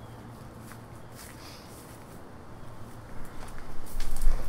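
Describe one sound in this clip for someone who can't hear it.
Footsteps crunch on grass close by.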